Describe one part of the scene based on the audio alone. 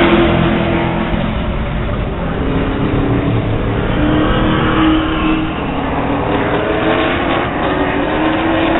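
Race car engines roar loudly around a track.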